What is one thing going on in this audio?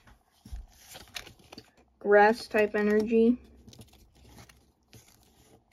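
Playing cards slide and rub against each other close by.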